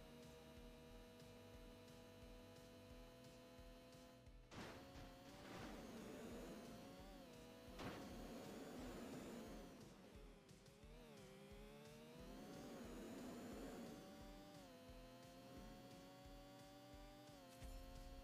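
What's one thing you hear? A sport motorcycle engine screams at high revs, its pitch rising and dipping.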